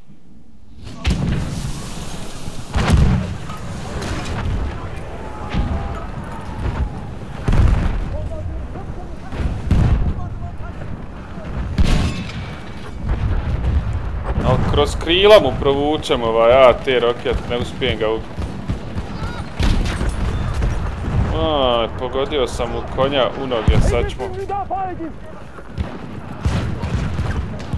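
Rifle shots crack sharply again and again.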